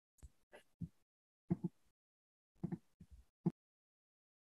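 A woman laughs softly over an online call.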